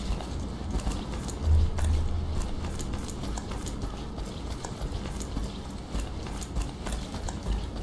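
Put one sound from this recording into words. Footsteps run quickly on a hard floor.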